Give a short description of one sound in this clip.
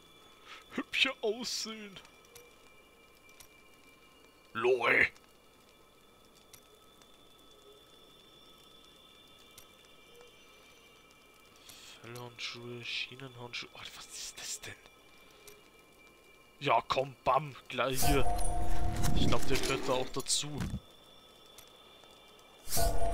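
Short game sound effects chime and whoosh now and then.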